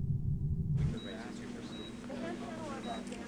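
A handheld electronic device beeps softly, again and again.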